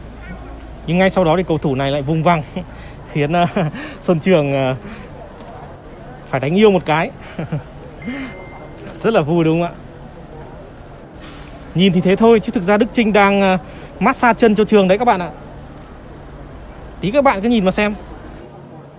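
A young man speaks close by, in short bursts.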